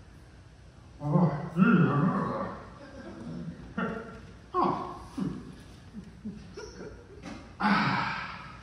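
A man speaks with animation in high puppet voices through a loudspeaker, in a large echoing hall.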